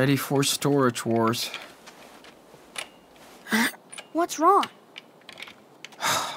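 A metal padlock clicks and rattles.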